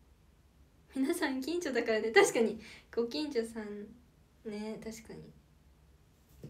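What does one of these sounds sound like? A young woman speaks cheerfully and close to the microphone.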